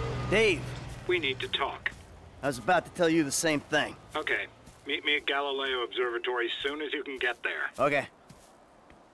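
A man talks calmly on a phone.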